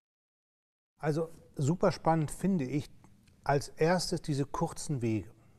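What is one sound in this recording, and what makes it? A middle-aged man talks calmly and with animation, close to a microphone.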